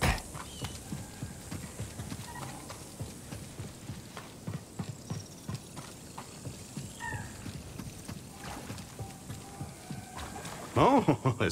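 Footsteps thud quickly on rocky ground.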